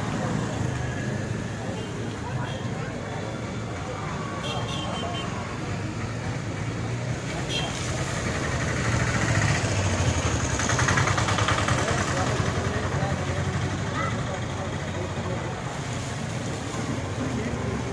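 A crowd of men and children murmur and chatter nearby outdoors.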